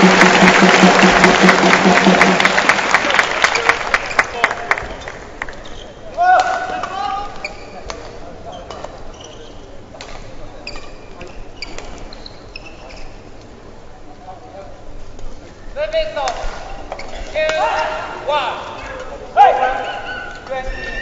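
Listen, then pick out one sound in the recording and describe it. Badminton rackets strike a shuttlecock back and forth.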